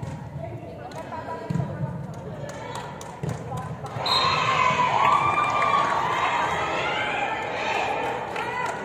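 Young women shout and call out in a large echoing hall.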